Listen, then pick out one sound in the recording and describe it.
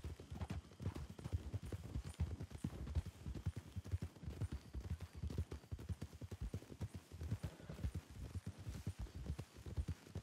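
Horse hooves thud rapidly on a dirt trail at a gallop.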